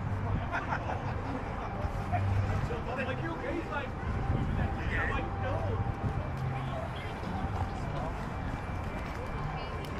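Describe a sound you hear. A crowd chatters at a distance outdoors.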